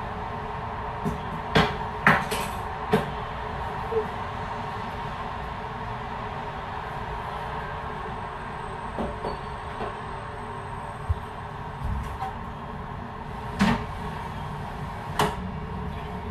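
Objects knock and clatter now and then during cleaning.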